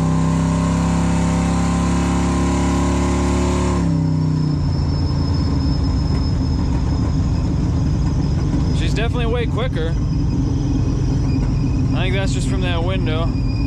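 A car engine roars under hard acceleration, then its pitch drops suddenly as it shifts gear.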